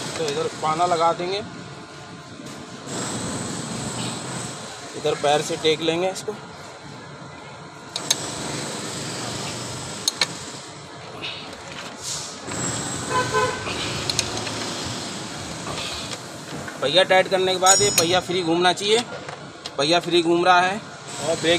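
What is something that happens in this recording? A metal wrench clinks and scrapes against a wheel's bolts.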